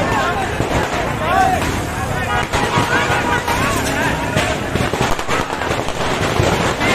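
A crowd of men and women talk and call out loudly all around, outdoors.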